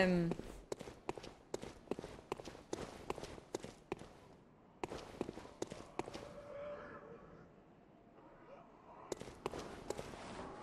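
A young woman speaks softly into a microphone.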